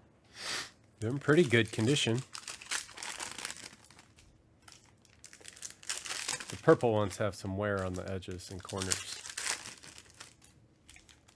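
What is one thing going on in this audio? Foil card packs crinkle and tear open in hands.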